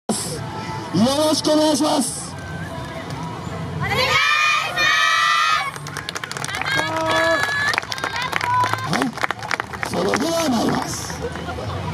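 A group of young women shout calls in unison outdoors.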